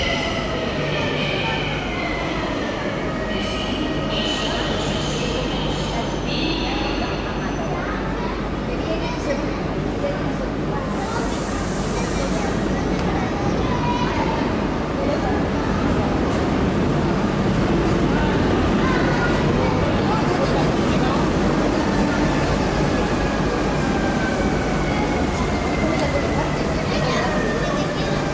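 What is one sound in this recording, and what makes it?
A train approaches and rolls into an echoing underground station.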